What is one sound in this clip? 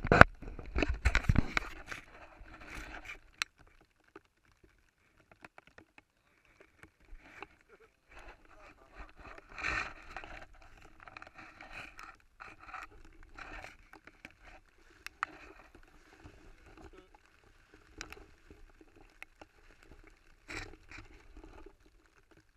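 A plastic tarp rustles and crinkles close by.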